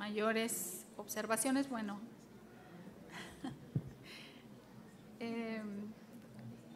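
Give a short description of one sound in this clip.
A middle-aged woman speaks into a microphone, reading out calmly.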